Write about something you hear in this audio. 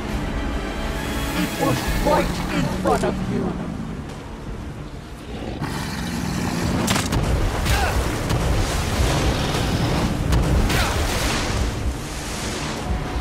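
A huge creature roars and growls loudly.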